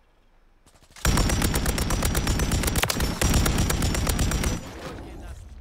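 Automatic gunfire rattles loudly in rapid bursts.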